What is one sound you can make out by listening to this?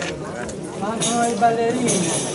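An accordion plays a tune.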